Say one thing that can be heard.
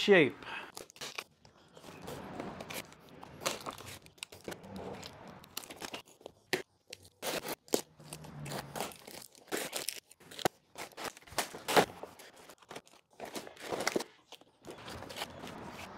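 Wooden boards knock and scrape on a concrete floor.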